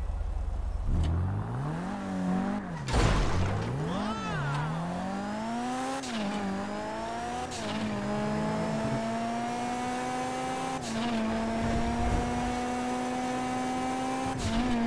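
A car engine revs up and roars as the car accelerates, rising and falling in pitch with gear changes.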